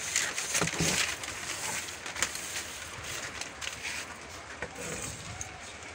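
Paper rustles and crinkles as it is rolled and moved.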